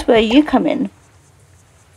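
A young woman exclaims loudly into a close microphone.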